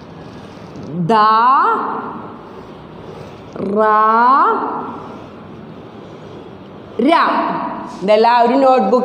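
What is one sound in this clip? A woman chants syllables loudly in long, drawn-out tones nearby.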